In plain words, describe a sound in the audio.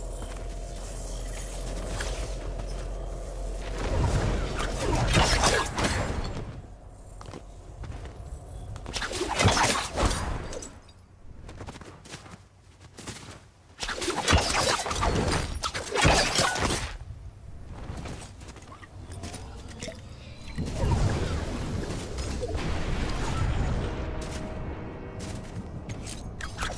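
Footsteps run quickly over grass and pavement.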